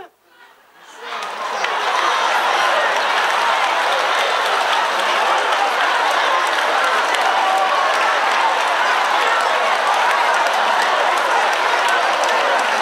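A large crowd chatters and murmurs loudly.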